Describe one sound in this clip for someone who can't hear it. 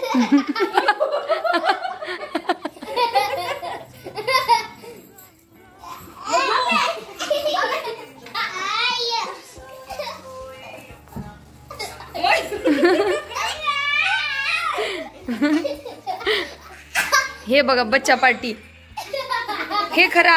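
Young girls laugh loudly and shriek close by.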